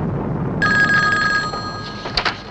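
A telephone rings.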